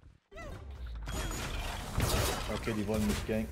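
Game spells burst and crackle loudly.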